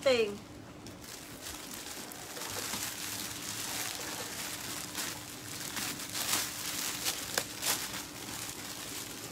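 Fabric rustles and crinkles as clothes are handled.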